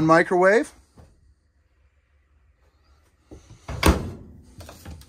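A microwave door clicks open.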